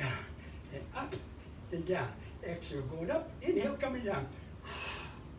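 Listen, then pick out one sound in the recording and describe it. An elderly man speaks close by with animation.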